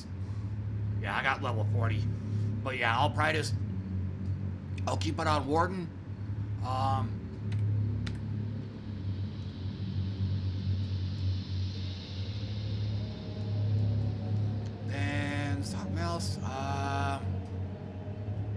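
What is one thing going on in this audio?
A man talks casually, close to a microphone.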